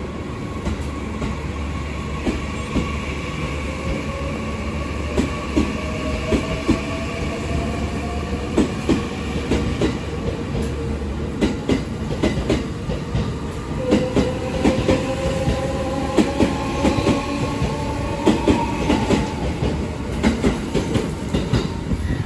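Train motors whine, rising in pitch as the train speeds up.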